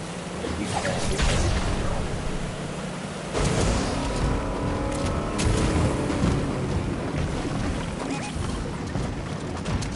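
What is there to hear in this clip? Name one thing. A vehicle engine rumbles and roars.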